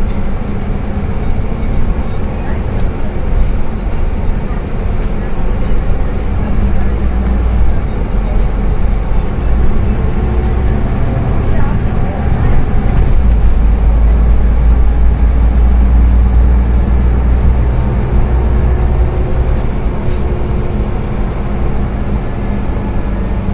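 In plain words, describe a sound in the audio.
A bus engine hums and drones steadily from inside the bus.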